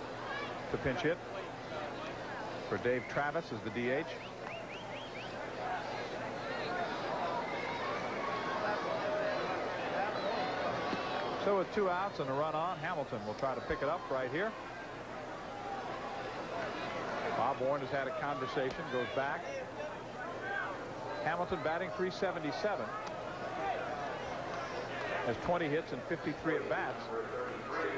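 A large crowd murmurs in a stadium.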